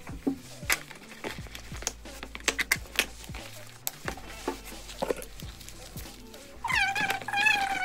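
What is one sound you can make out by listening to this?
A leather bag rustles and knocks as it is handled.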